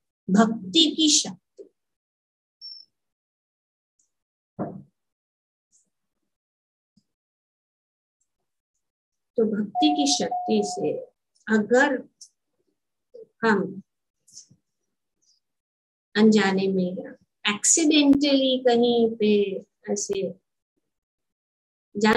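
A middle-aged woman speaks calmly through a headset microphone over an online call, with pauses.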